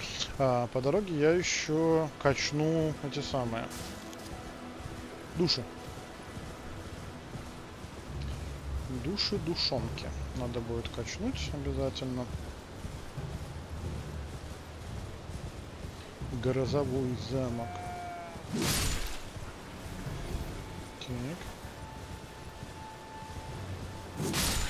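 A horse gallops over grass with thudding hoofbeats.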